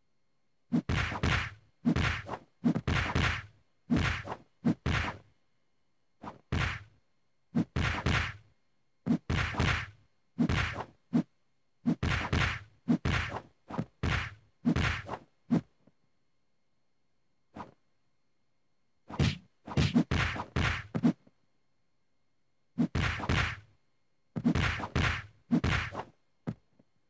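Punches and kicks land with heavy thuds in quick bursts.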